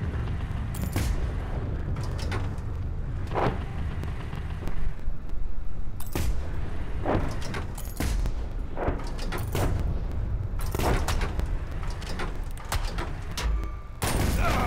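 A tank cannon fires sharp shots again and again.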